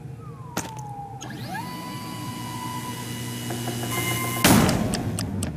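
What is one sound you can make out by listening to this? A handheld device whirs, rising in pitch as it charges.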